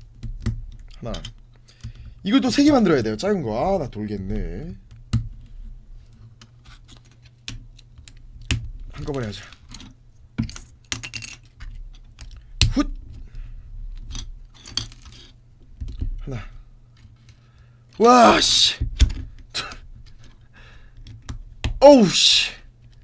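Plastic toy bricks click and rattle as they are pressed together.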